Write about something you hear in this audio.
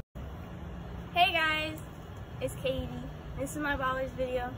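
A woman speaks outdoors with animation.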